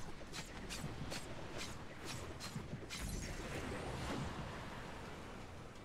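Lightning strikes crackle and zap in quick bursts.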